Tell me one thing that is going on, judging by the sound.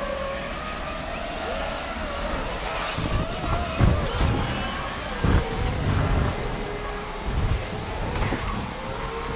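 Tyres hiss through water on a wet road.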